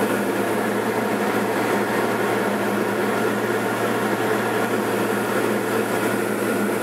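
The engine of a light single-engine propeller plane drones steadily in level flight, heard from inside the cabin.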